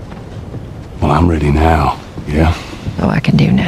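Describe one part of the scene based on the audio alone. A man answers in a low, calm voice.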